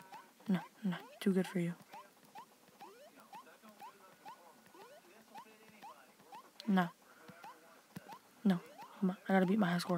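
Short rising electronic blips sound in quick, steady succession.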